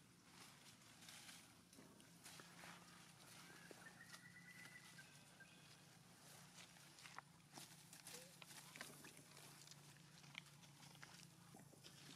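Monkeys scuffle and rustle through leaves and grass.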